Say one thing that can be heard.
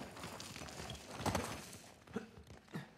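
A heavy stone crashes down with a burst of rubble.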